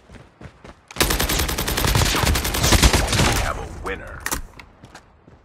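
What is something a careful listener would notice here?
A rifle fires loud, sharp shots in rapid bursts.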